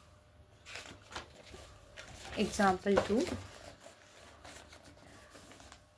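A book page is turned over with a papery rustle.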